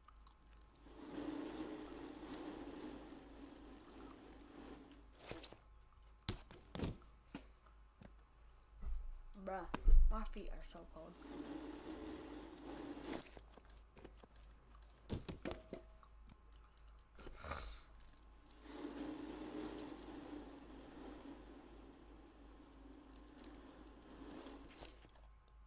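Bicycle tyres roll and hum over a smooth ramp.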